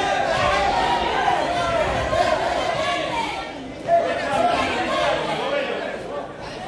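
A large crowd shouts and cheers in a loud, echoing hall.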